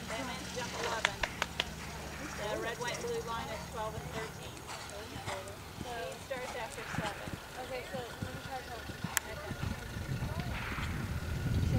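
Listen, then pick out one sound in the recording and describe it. A horse canters with soft, rhythmic hoofbeats on sand.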